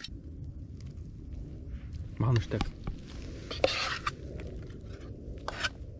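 Cooked grains slide and tip from a pot into metal bowls.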